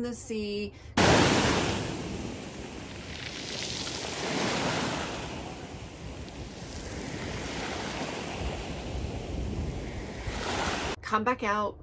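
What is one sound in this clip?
Waves wash and foam onto the shore.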